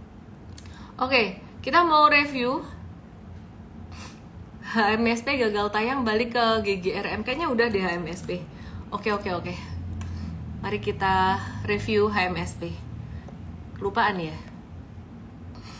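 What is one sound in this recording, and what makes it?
A young woman talks calmly and closely into a microphone, in short bursts with pauses.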